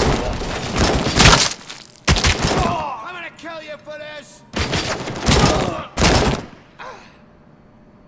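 A gun fires loud bursts of rapid shots.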